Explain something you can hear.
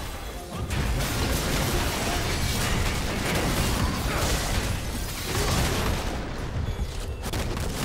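Spell effects and weapon hits crash and crackle in a game battle.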